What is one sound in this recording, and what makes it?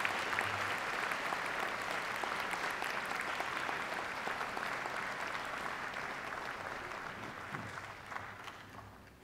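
An audience claps and cheers in a large echoing hall, slowly fading.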